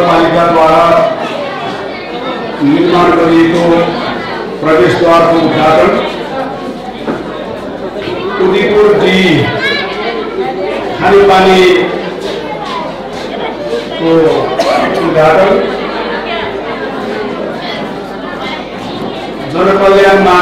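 A middle-aged man speaks slowly and formally into a microphone, heard over a loudspeaker in a large echoing hall.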